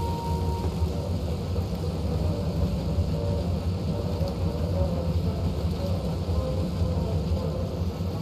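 Sparks crackle and fizz from a broken machine overhead.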